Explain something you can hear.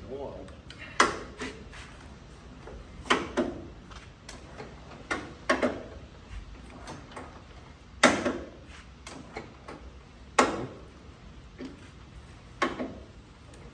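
A hand crank clanks sharply as a man turns an old car engine over.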